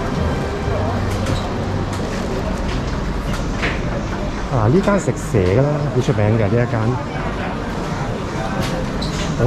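A busy street crowd murmurs and bustles outdoors.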